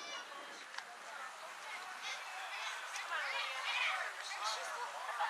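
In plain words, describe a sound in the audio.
Children shout and call out across an open field outdoors.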